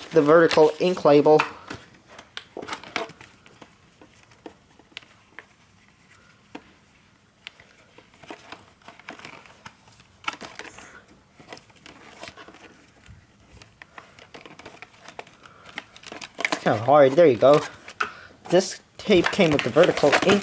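A plastic cassette case clicks and rattles as it is handled.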